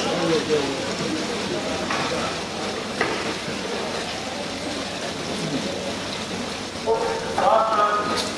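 Swimmers splash through the water in an echoing indoor pool.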